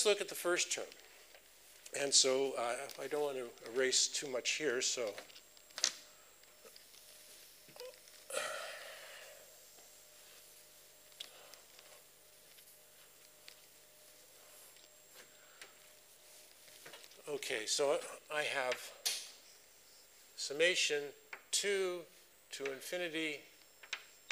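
A man lectures calmly at a moderate distance.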